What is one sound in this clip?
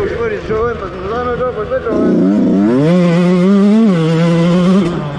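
A dirt bike engine revs and whines, rising and falling in pitch.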